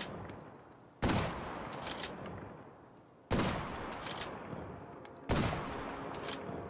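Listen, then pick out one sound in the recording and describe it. A rocket launcher fires with a loud boom that rumbles away.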